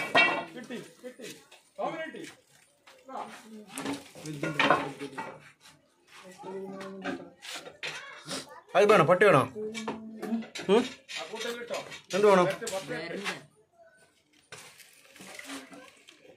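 Wooden boards knock and scrape.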